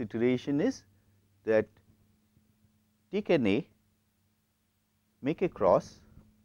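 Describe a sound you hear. A middle-aged man speaks calmly through a clip-on microphone, in short phrases with pauses.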